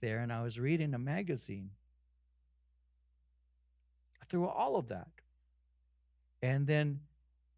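An older man speaks with animation through a microphone, pausing between phrases.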